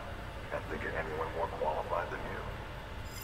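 A man speaks calmly over a radio-like transmission.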